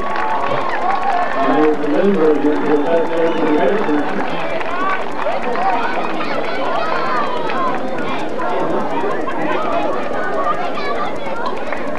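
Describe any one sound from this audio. Football players shout to each other across the field.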